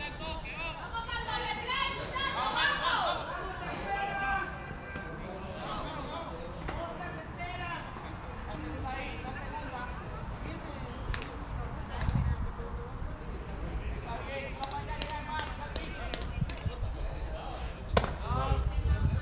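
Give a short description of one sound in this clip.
Young men call out across an open field.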